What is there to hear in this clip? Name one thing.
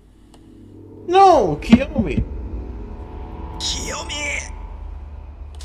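A young man shouts out in anguish.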